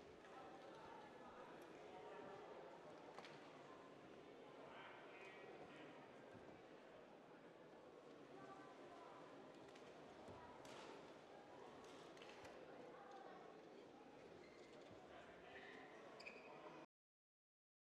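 Men talk quietly in a large echoing hall.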